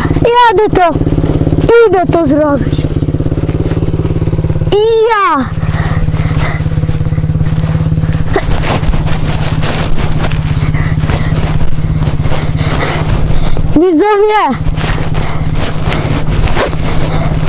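A dirt bike engine idles with a steady throb close by.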